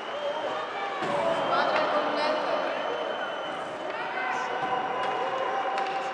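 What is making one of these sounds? A hockey stick clacks against a puck.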